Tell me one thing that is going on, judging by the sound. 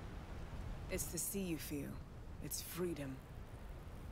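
A woman answers in a lively, confident voice.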